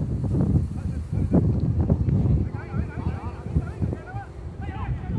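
Wind buffets a microphone outdoors.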